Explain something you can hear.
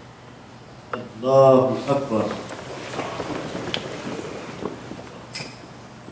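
Clothes rustle as many men bow and kneel.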